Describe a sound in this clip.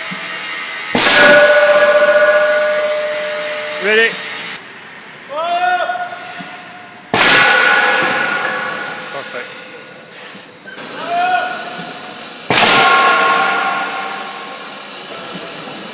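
A heavy machine arm strikes cast iron with loud ringing clangs.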